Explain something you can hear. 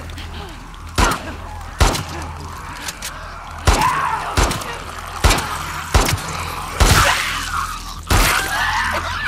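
Pistol shots ring out sharply, one after another.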